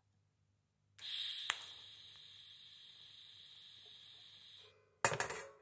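A welding arc hisses and crackles steadily.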